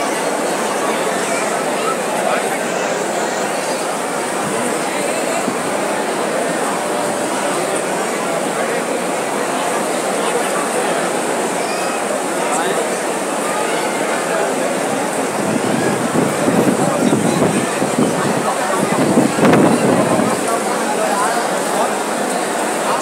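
A large crowd of men chants and shouts loudly in an echoing hall.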